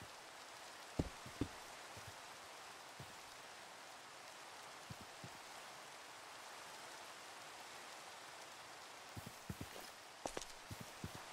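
Sharp thuds of blows land now and then.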